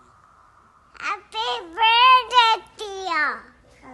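A little girl talks and laughs brightly, close up.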